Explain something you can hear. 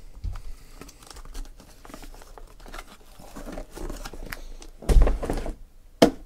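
Cardboard flaps are pulled open with a rough scrape.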